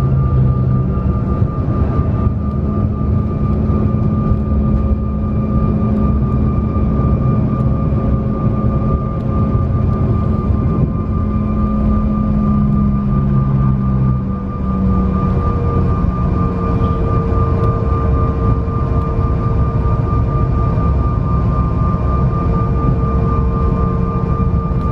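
Jet engines whine steadily as an airliner taxis.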